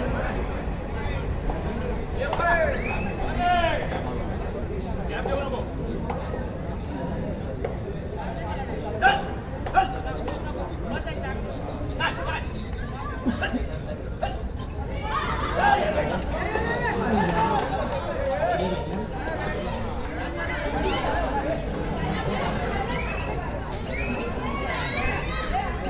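A crowd of men chatters and shouts in a large echoing hall.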